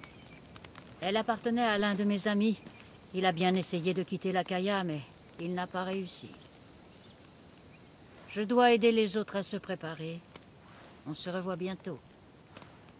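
An older woman speaks with animation, close by.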